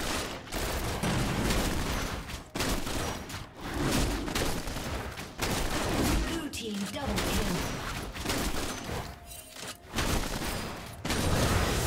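Sword strikes clash and thud rapidly.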